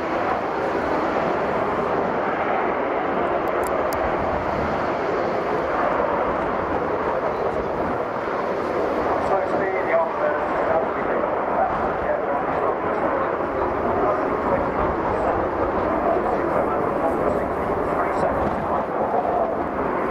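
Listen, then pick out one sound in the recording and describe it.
A jet engine roars loudly and steadily overhead.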